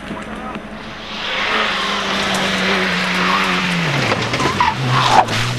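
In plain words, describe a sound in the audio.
A car engine revs up and down as a car speeds past.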